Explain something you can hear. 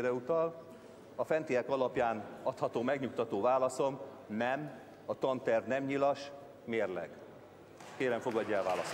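An elderly man speaks into a microphone, reading out steadily.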